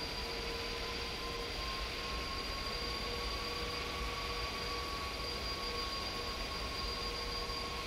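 A jet engine hums steadily.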